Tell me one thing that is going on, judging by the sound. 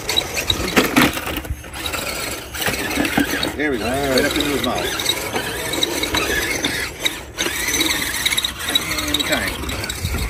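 Plastic wheels clatter over wooden slats.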